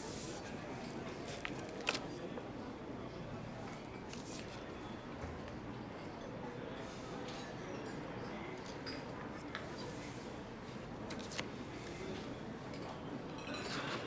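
Paper pages rustle as a booklet is turned and handled.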